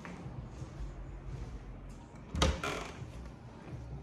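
A door handle clicks as a door opens.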